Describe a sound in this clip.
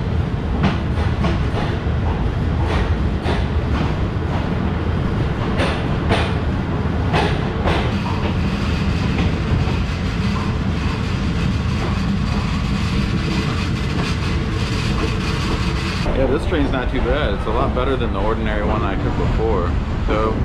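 A train rumbles steadily as it rolls slowly along the tracks.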